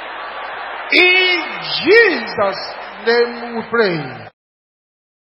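A man preaches with animation through a microphone.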